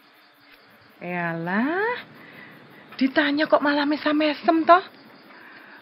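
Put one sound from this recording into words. A woman speaks emotionally, her voice strained and tearful.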